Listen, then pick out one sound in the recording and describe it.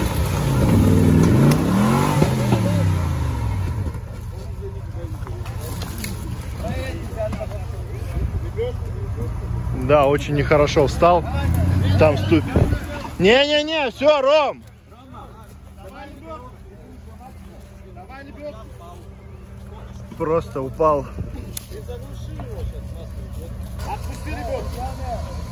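Tyres churn and spin in mud.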